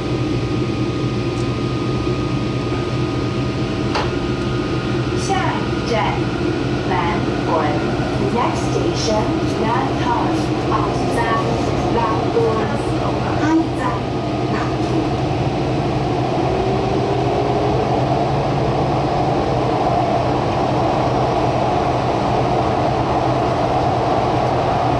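A train hums steadily as it rolls along the rails.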